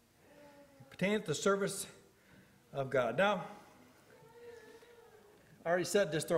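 A middle-aged man speaks slowly and earnestly through a microphone, in short phrases with pauses.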